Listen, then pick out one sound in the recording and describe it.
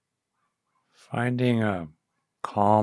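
An older man speaks calmly and close into a microphone.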